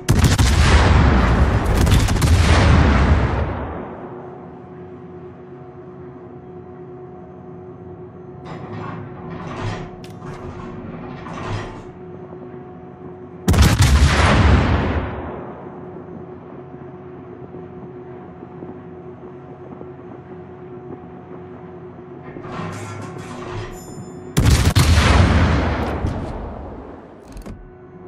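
Heavy naval guns fire in loud booming salvos that rumble and fade.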